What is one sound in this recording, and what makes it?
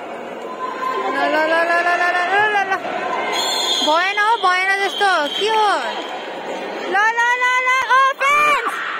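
Spectators cheer and chant loudly.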